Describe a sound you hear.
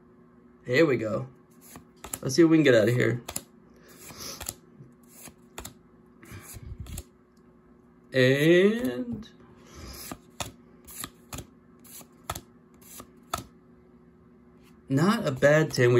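Playing cards slide and flick softly against each other.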